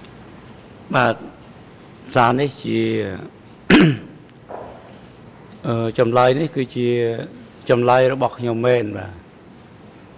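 An elderly man speaks slowly through a microphone.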